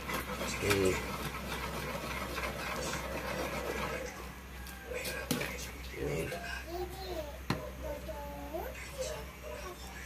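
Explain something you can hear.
A metal ladle scrapes and clinks against a wok while stirring.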